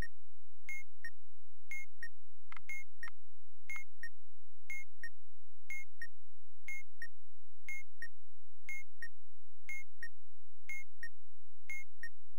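A bomb timer ticks with a sharp double beep once every second.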